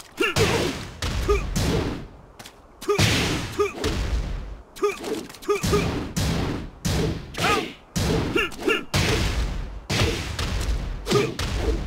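A body slams onto the ground with a splash.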